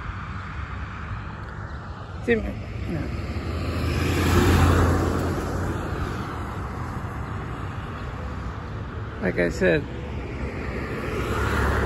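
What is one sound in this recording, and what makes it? Traffic hums steadily along a road outdoors.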